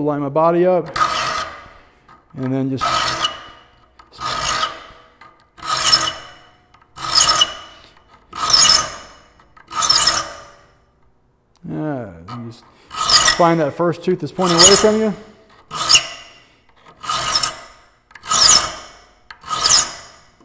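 A metal file rasps across saw teeth in slow, even strokes.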